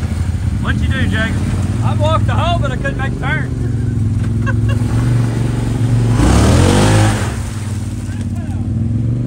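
An off-road vehicle's engine idles and rumbles steadily nearby.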